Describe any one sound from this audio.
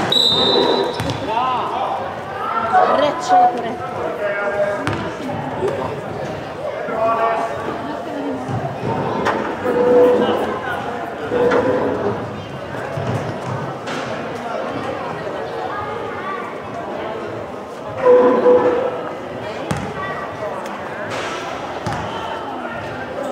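Young women players call out to each other in a large echoing sports hall.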